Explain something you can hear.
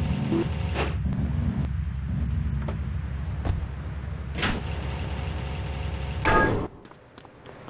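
A car engine idles with a low rumble.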